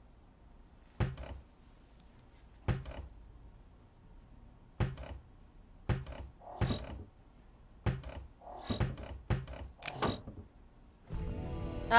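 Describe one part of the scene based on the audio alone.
Wooden lids and drawers click open one after another.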